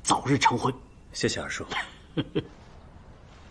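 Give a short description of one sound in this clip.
A young man speaks briefly and quietly.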